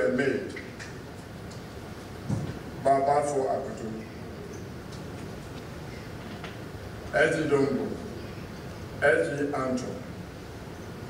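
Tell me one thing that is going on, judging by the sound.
An elderly man speaks slowly into a microphone, heard through loudspeakers in a large hall.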